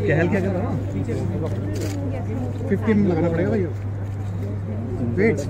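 A crowd of men and women chatter and talk nearby.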